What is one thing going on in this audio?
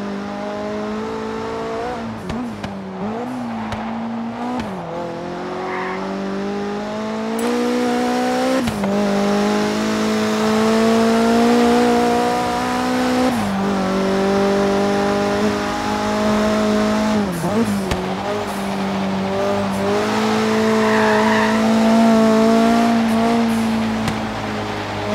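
A sports car engine drones loudly as it accelerates, its pitch climbing and dropping sharply with each gear change.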